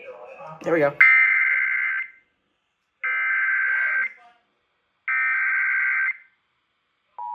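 An emergency alert tone blares in bursts from a radio speaker.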